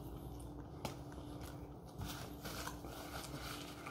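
A young man chews food.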